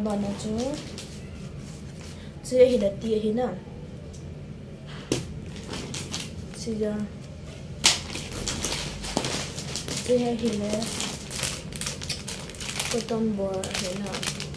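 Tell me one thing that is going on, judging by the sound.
Plastic packaging crinkles and rustles in a young woman's hands.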